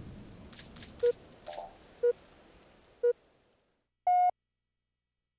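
A countdown timer beeps once a second, ending with a longer, higher beep.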